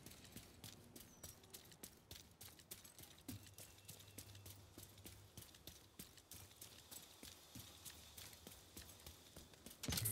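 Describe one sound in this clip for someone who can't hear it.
Footsteps run quickly over wet pavement.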